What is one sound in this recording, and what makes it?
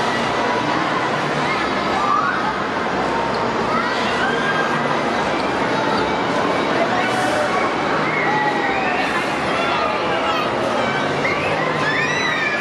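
Children and young riders scream and shout with excitement.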